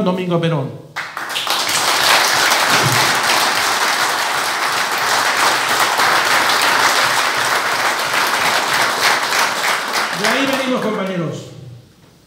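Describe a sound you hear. A large crowd claps and cheers loudly.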